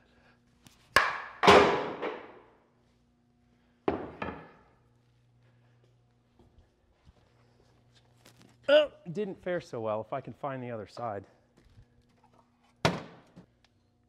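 Wooden boards knock and clatter.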